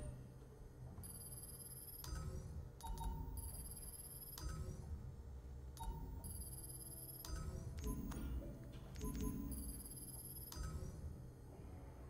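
Short electronic chimes ring, one after another.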